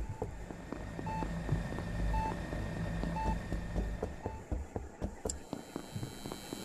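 Quick light footsteps patter in a game.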